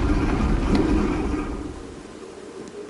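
A heavy stone door rumbles open.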